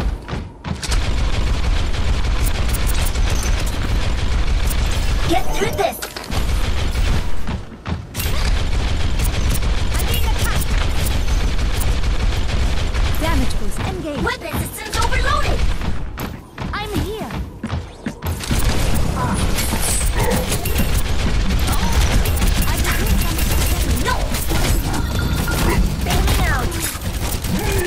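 Rapid energy gunfire rattles on and off.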